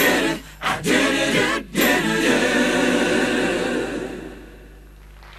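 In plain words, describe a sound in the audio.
A band plays music.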